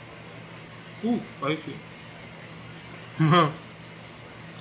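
A young man speaks briefly, close by.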